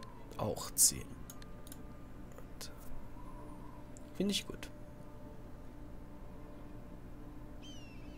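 Game menu clicks and chimes sound.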